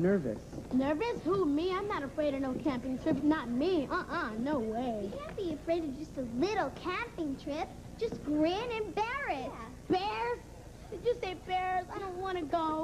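A boy talks with animation.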